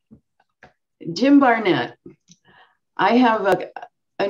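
An elderly woman speaks warmly and with animation over an online call.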